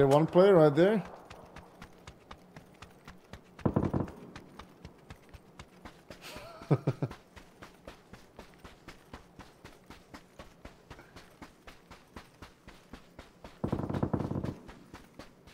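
Footsteps run quickly and steadily over dry dirt.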